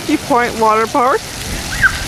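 Water sprays and splashes from a fountain.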